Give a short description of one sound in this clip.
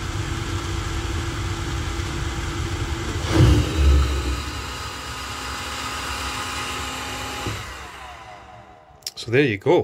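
A small electric fan whirs steadily, then winds down and falls silent.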